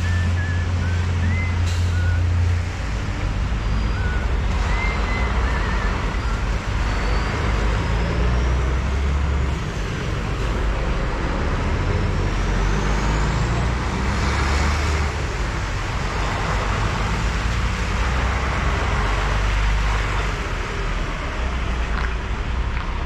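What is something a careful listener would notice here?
Tyres hiss on the wet road.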